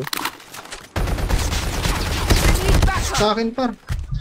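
Gunshots fire rapidly in a video game.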